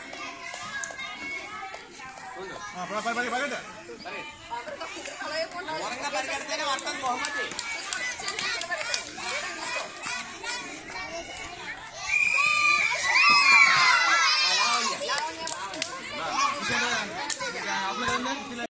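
A crowd of children chatters and calls out nearby outdoors.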